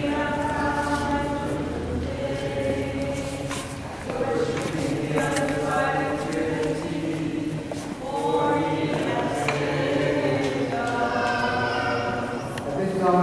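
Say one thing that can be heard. A group of people sings slowly together in a large echoing hall.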